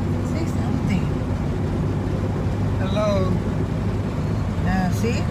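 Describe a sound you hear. A car engine hums steadily from inside the car.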